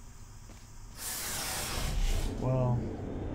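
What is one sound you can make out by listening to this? A futuristic gun fires with a loud whooshing burst.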